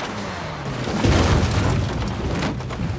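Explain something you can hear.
A car crashes hard onto the ground with a heavy thud.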